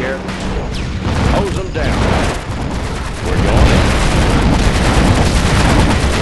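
Rockets whoosh through the air.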